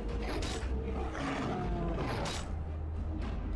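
A troll roars and growls.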